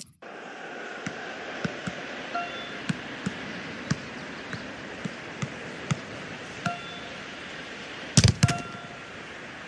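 A football is kicked repeatedly with dull thuds.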